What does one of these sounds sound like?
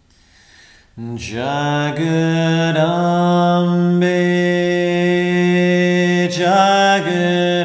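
A man sings long, steady notes close to a microphone.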